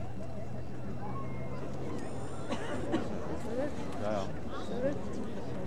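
A crowd of spectators murmurs and chatters nearby outdoors.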